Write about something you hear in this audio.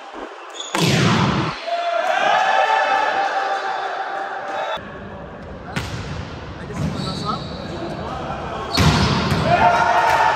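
A volleyball is struck hard with a sharp slap in an echoing hall.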